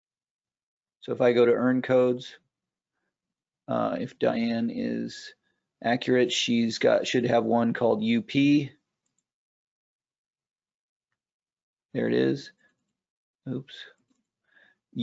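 A man speaks calmly and explains, close to a microphone.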